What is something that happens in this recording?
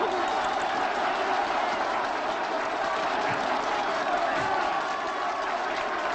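A man speaks loudly to a crowd.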